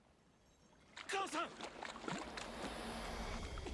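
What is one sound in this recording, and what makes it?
A young man shouts out loudly nearby.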